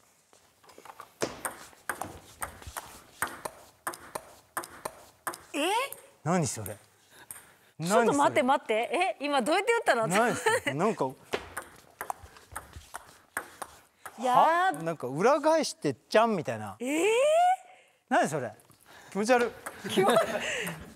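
A ball clicks back and forth on a table tennis table.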